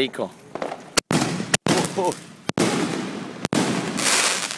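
Fireworks bang and crackle nearby.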